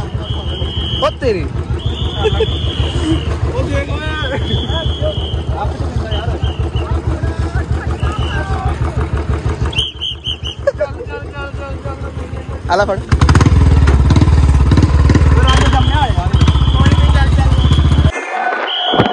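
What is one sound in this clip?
A motorcycle engine idles with a steady, rapid thumping.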